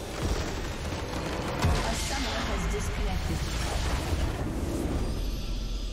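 Game spell effects crash and whoosh in a burst of fighting.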